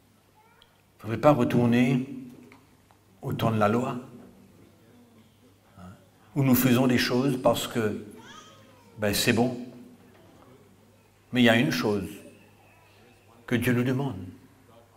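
A middle-aged man speaks with emphasis into a microphone, in short bursts with pauses, in a large echoing room.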